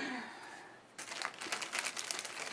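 Fabric rustles under a hand.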